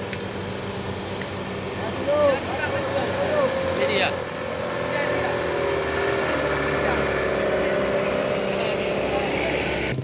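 Men in a small crowd talk and call out outdoors.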